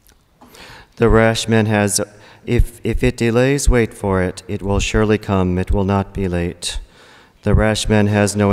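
A man speaks calmly into a microphone, heard through a loudspeaker in an echoing hall.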